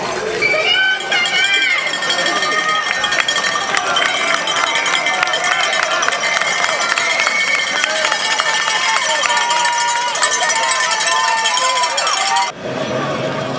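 Spectators clap their hands.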